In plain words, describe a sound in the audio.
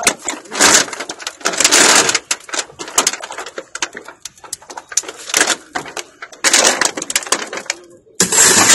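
A metal chain clinks and rattles.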